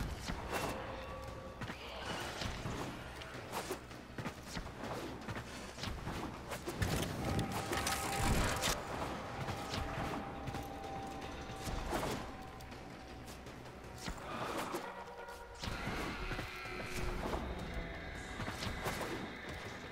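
Footsteps thud quickly on metal floors.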